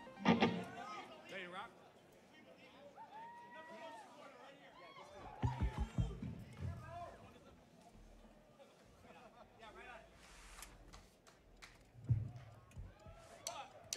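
A live band plays funky music with electric guitar and drums in a large hall.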